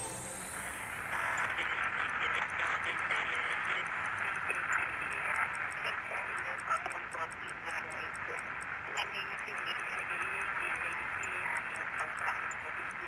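A warbling electronic tone wavers steadily.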